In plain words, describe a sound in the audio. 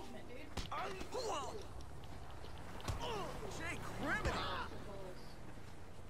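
Fists thud against a body in a scuffle.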